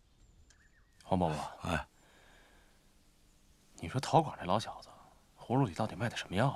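A middle-aged man speaks in a low, hushed voice close by.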